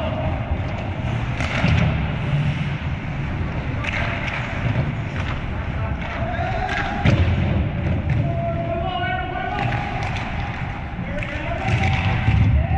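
Skate blades scrape across ice in a large echoing rink.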